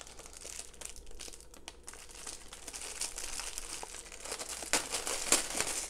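Scissors snip through a plastic tie.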